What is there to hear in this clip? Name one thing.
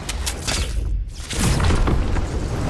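A launch pad bursts with a loud whoosh.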